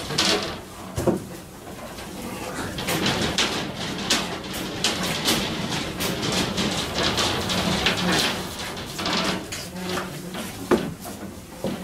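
A metal step stool creaks and knocks as someone steps onto and off it.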